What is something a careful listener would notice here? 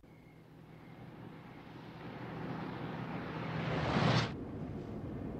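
A car drives up and rushes past.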